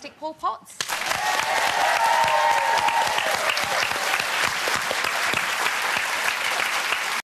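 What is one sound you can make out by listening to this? A crowd applauds loudly with dense, steady clapping.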